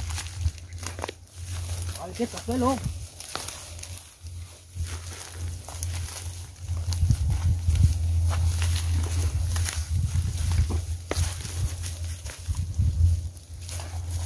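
Dry leaves crunch underfoot as men walk through brush.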